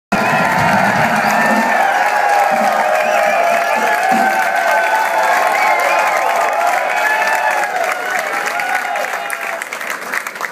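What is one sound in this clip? A man sings through a microphone over a loudspeaker.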